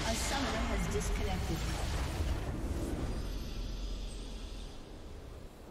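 A large structure explodes with a loud, rumbling blast that slowly fades.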